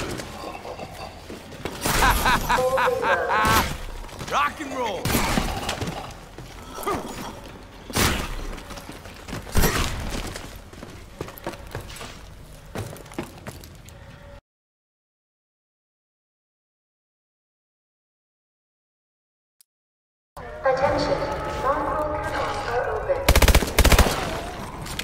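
A rifle fires.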